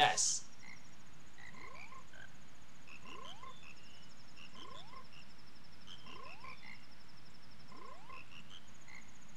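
Cartoon frogs chirp in short, rising notes, again and again.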